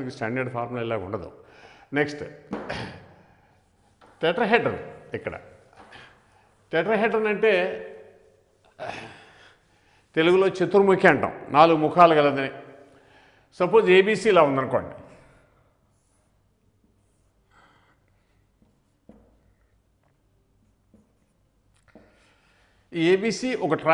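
An elderly man speaks calmly and clearly, lecturing close to a microphone.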